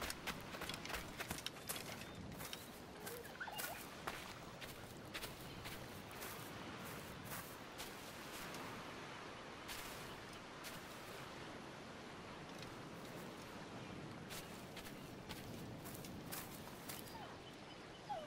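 Footsteps rustle through grass and over sand.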